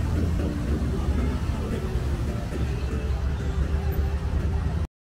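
Traffic rumbles steadily along a city street.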